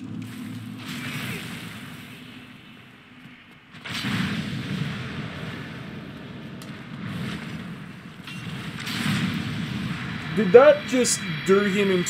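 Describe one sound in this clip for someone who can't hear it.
A huge monster stomps and growls.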